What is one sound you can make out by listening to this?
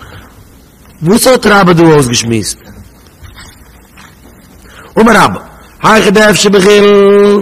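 A man speaks loudly into a microphone, chanting and stretching out his words.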